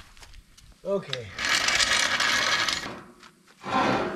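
A floor jack creaks as it is pumped.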